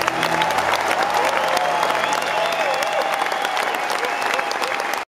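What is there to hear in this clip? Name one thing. A guitarist plays an electric guitar.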